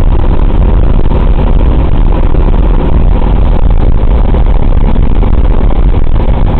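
The radial engines of a four-engine piston bomber drone in flight, heard from inside the fuselage.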